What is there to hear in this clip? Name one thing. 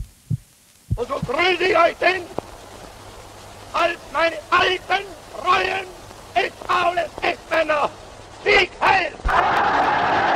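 A man gives a forceful speech through a microphone.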